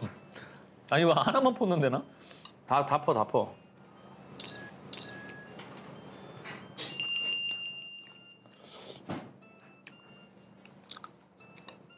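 Metal chopsticks and a ladle clink against dishes.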